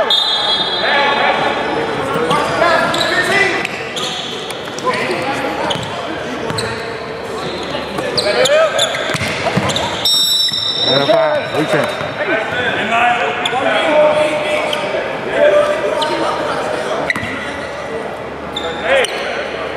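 A basketball bounces on the hard floor.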